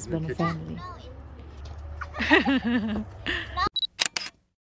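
A young woman talks and laughs with animation outdoors.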